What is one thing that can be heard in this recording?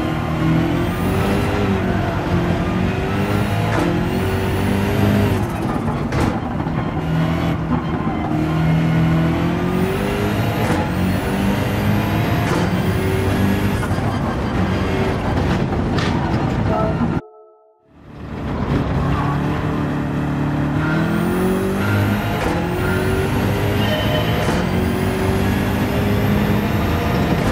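A racing car engine roars loudly, revving up and down as it shifts through gears.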